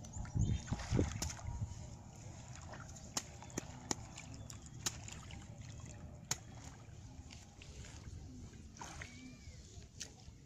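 Water splashes as hands dig in a flooded ditch.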